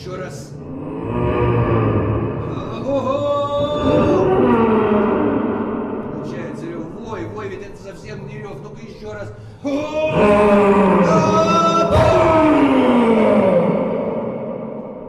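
A man cries out loudly in long, wavering wails.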